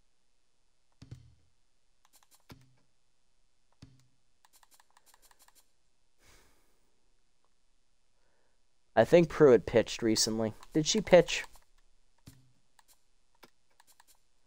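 Short game menu clicks sound as selections change.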